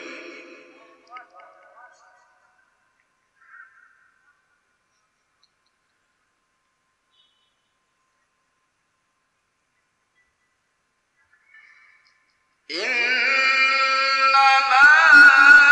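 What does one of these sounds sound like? A young man chants melodiously into a microphone, heard through a loudspeaker in a reverberant hall.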